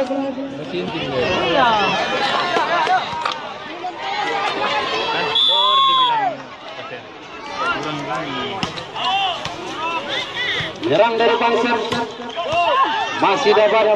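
A volleyball is struck hard by hand.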